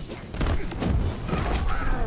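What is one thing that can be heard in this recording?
Fire bursts with a whoosh in a fighting game.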